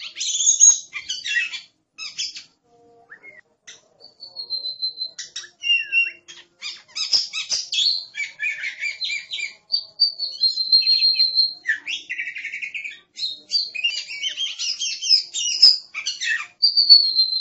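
A songbird sings a varied, rich song of whistles, trills and chirps close by.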